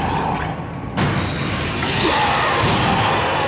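Heavy metal doors clank and slide open.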